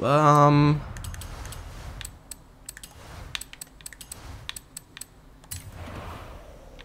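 Menu clicks tick in quick succession.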